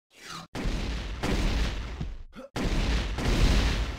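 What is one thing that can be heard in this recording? Energy blasts fire in rapid bursts.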